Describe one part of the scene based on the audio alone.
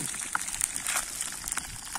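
A fire crackles under a frying pan.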